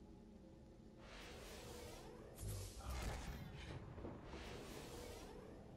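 Energy blasts crackle and boom in quick bursts.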